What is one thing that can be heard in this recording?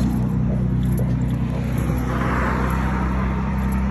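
Footsteps scuff on a concrete pavement.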